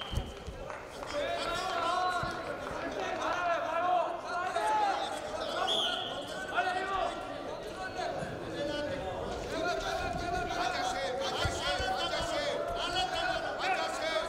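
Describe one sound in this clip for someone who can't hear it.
Men shout loudly and urgently from nearby, echoing in a large hall.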